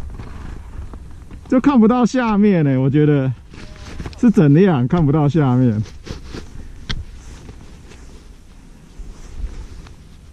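Skis scrape softly on packed snow.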